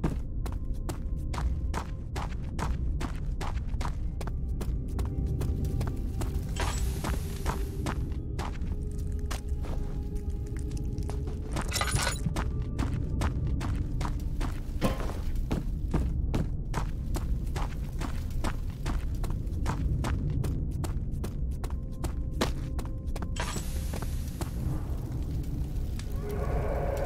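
Footsteps thud steadily on stone.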